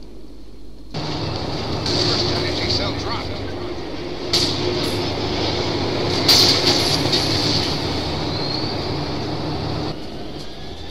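A tank cannon fires with heavy booms in a video game.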